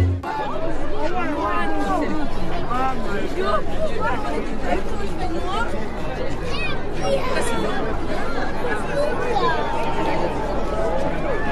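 A large crowd of men and women chatter loudly all around outdoors.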